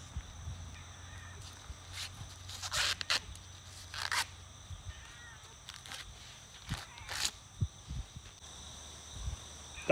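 Corn husks rip and tear as they are pulled away.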